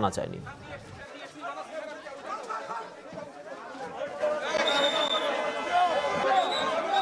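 A crowd of men talks and shouts nearby outdoors.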